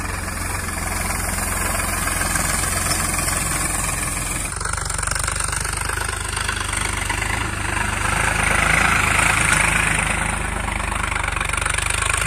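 Tractor tyres crunch over dry straw.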